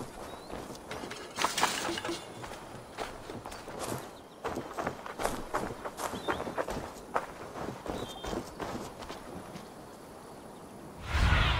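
Footsteps run and thud across ground and wooden planks.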